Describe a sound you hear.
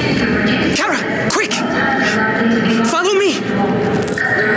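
A young man calls out urgently.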